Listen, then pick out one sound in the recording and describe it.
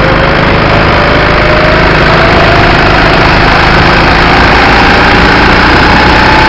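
A go-kart engine roars loudly close by, its pitch slowly rising as it speeds up.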